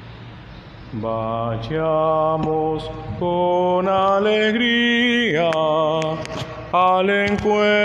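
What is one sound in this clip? A man sings a chant through a microphone, echoing in a large hall.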